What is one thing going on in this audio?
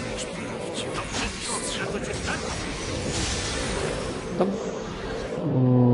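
Magic spells whoosh and crackle amid a clash of fighting.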